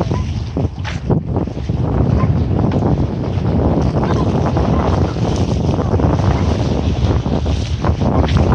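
Small choppy waves splash and lap against concrete steps.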